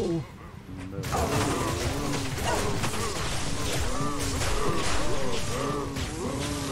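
Game combat sounds clash with whooshing spell effects and creature cries.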